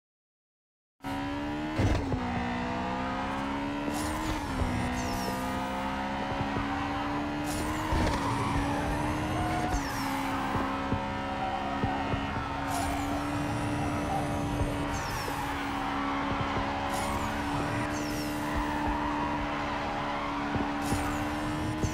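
A racing car engine roars at high speed, shifting gears.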